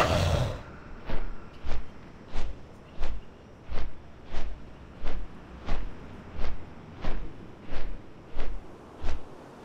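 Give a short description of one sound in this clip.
Large wings flap in a slow, steady rhythm.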